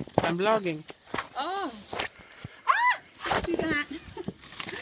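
A woman laughs and talks excitedly close by.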